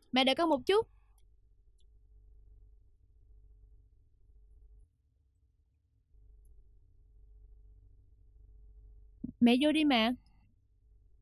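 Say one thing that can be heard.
A young woman speaks softly to a baby.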